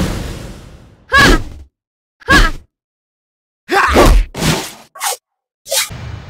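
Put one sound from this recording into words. Swords swing and clash with metallic rings.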